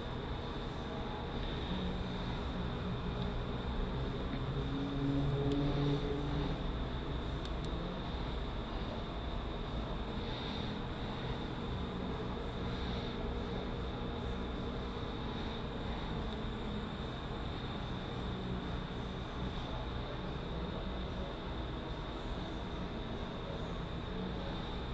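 Metal parts clink and scrape as they are handled.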